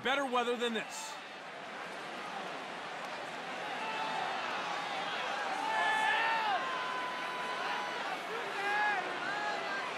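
A large crowd cheers and murmurs steadily in an open stadium.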